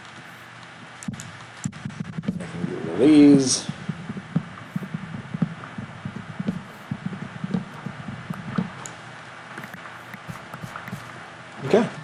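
Wooden blocks are hit repeatedly with knocking thuds and break apart.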